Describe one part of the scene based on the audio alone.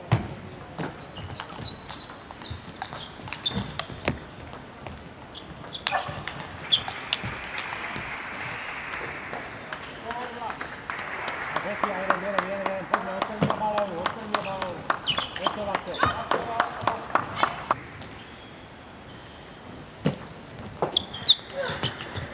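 Players' shoes squeak on the floor.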